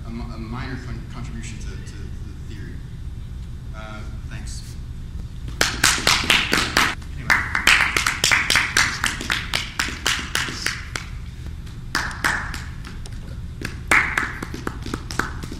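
A man speaks calmly into a room with some echo.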